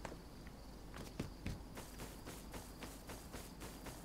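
Footsteps crunch along a dirt path.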